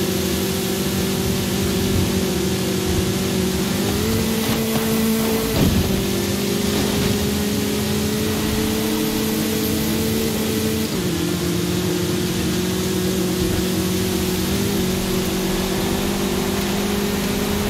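Tyres crunch and hiss over loose sand.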